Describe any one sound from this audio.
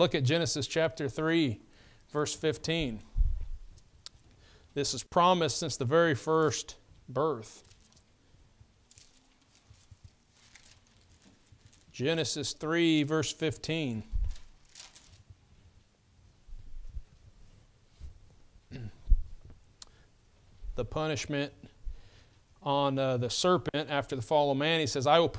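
A man speaks calmly through a microphone, with pauses between phrases.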